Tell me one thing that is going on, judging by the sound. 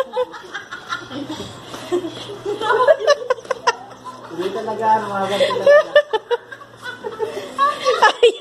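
Women shout and laugh with excitement close by.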